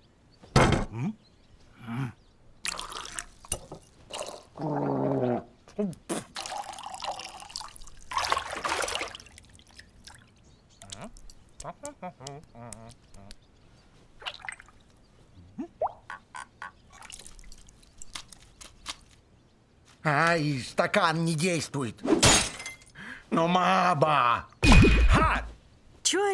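An old man's cartoon voice mutters and rants with animation.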